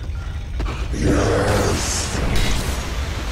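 A fiery spell bursts with a loud whoosh.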